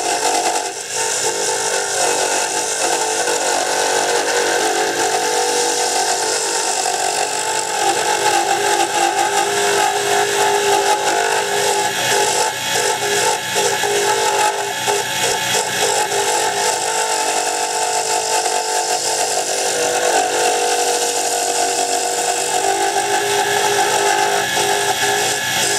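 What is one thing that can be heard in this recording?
A hand-held gouge cuts a spinning piece of hardwood with a scraping hiss.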